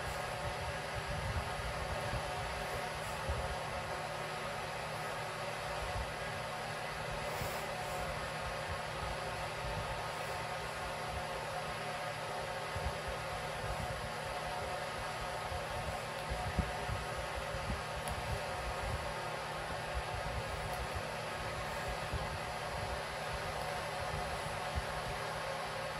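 A hand rubs a cat's fur with a soft rustle.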